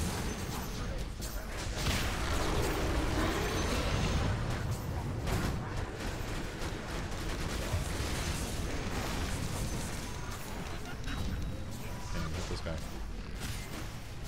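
Game spell effects crackle and boom.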